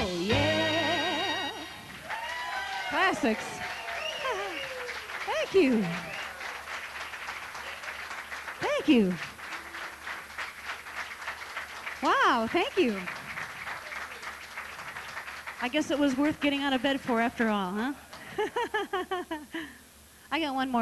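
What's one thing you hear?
A woman sings with expression through a microphone.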